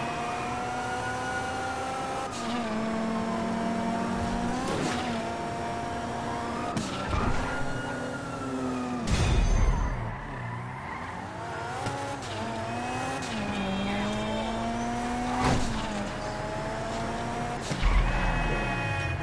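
A car engine revs and shifts gears as it speeds along.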